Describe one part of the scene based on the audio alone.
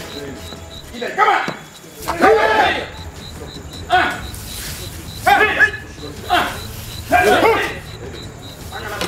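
Men shout and talk loudly nearby.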